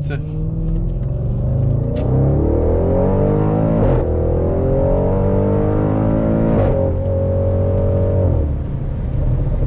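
A car engine roars and climbs in pitch as it speeds up through the gears.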